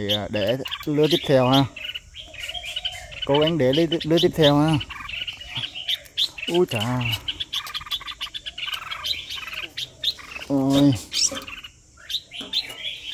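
A small bird cheeps rapidly and shrilly close by.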